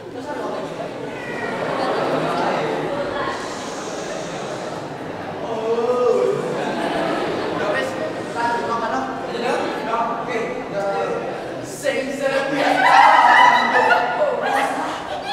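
Men and women speak and call out in a large echoing hall.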